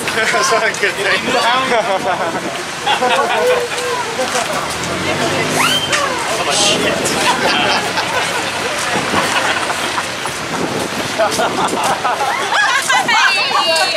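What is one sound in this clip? A crowd of people chatters outdoors on a busy street.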